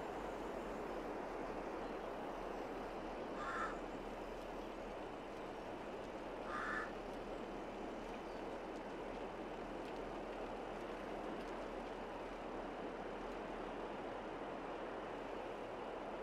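A wheel loader's diesel engine rumbles steadily.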